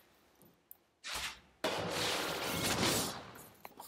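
A whooshing, rumbling game effect plays as a piece attacks.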